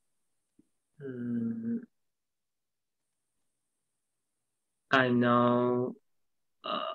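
A woman answers with a long, drawn-out sound over an online call.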